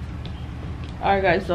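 A young woman speaks briefly and calmly, close by.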